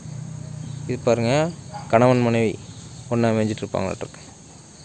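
A rooster crows nearby outdoors.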